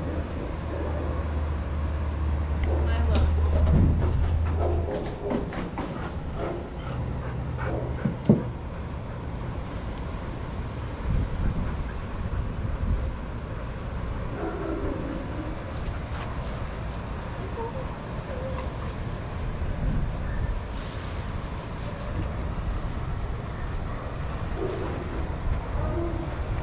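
Dogs pad and scuffle on sand nearby.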